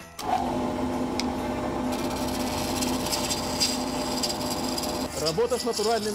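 A wood lathe hums steadily.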